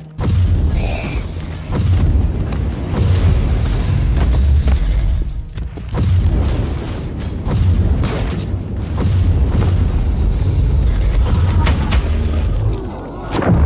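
Blades slash and swoosh repeatedly.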